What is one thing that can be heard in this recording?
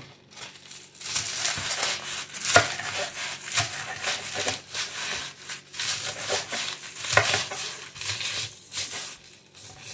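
A knife chops through crunchy dried leaves on a wooden board, with sharp crackling cuts.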